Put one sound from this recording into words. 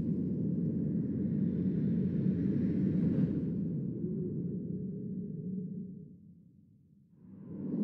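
A spaceship engine rumbles low and steadily, then fades away.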